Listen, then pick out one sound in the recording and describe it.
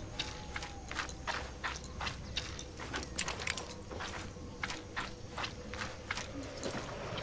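Footsteps crunch on dirt and stones at a steady walking pace.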